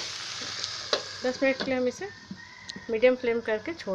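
A metal lid clinks onto a pan.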